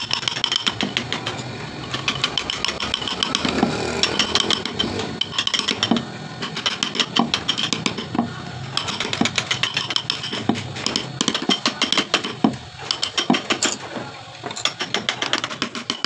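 A mallet taps rapidly on a chisel cutting into wood.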